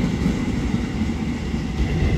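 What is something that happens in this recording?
A second train approaches with a low rumble.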